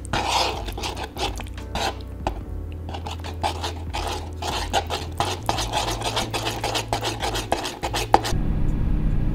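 A spoon scrapes and taps against a wooden bowl while stirring a thick sauce.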